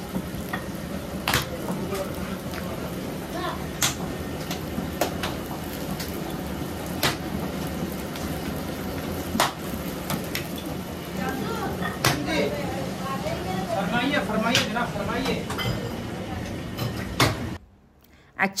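Flatbreads sizzle on a hot griddle.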